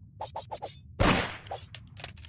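A gunshot rings out once, sharp and loud.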